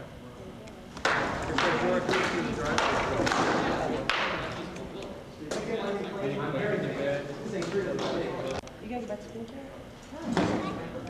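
Wooden weapons strike shields and armour with sharp knocks in an echoing hall.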